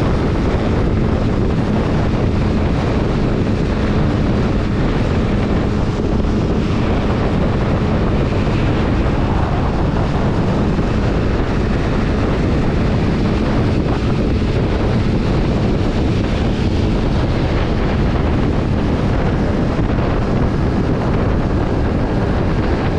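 Wind buffets loudly against a riding microphone.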